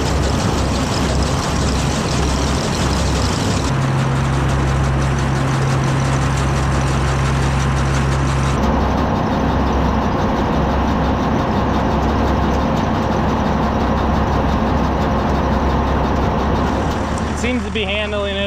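A tractor engine runs.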